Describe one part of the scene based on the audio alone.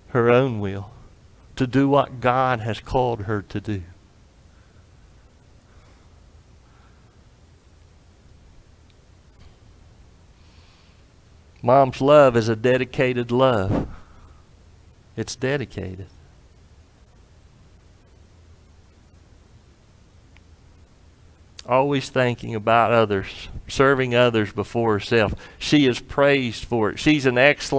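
A middle-aged man preaches through a microphone, speaking in bursts with long pauses.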